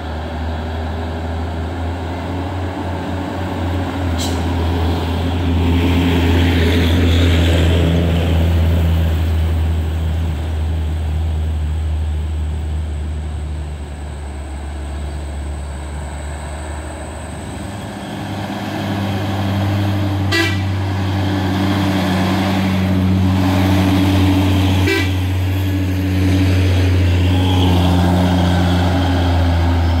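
Tyres roll on a road.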